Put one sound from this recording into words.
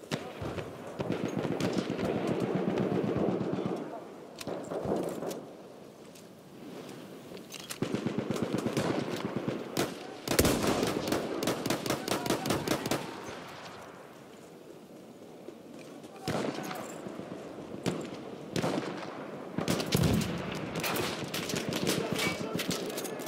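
Gunfire crackles and booms in the distance.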